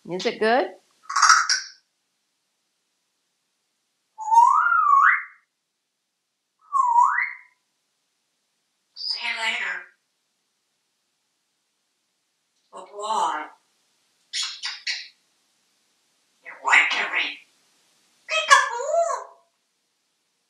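A parrot squawks, whistles and chatters in short bursts in a small echoing room.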